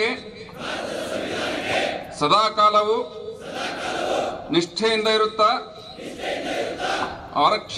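A man calls out commands loudly through a loudspeaker, echoing outdoors.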